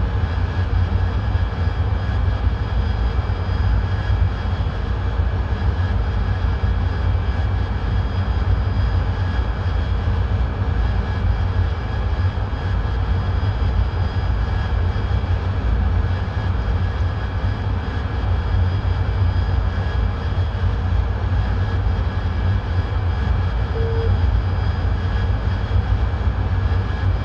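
A jet engine roars steadily inside the cockpit.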